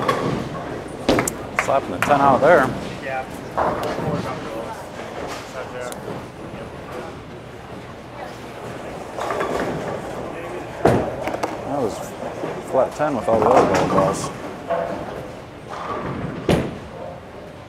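Bowling pins crash and clatter in an echoing hall.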